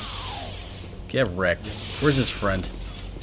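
Lightsabers clash with sharp crackling strikes.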